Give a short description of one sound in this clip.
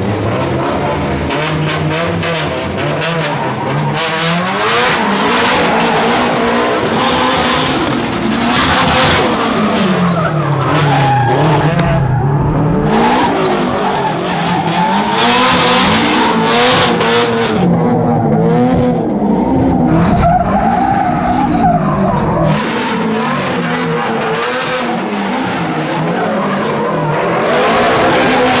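Car engines rev loudly, rising and falling.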